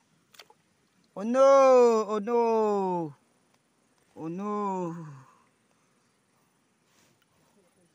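Water splashes gently as a hand moves through a shallow pool.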